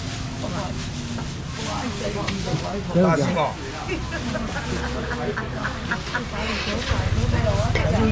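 Plastic bags rustle.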